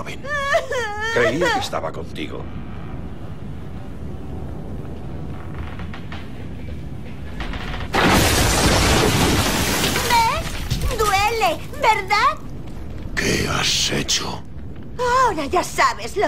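A young woman speaks in a mocking, playful voice.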